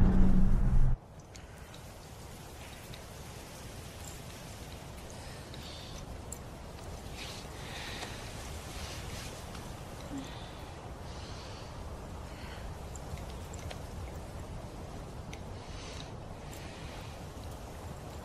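Wind rustles softly through trees outdoors.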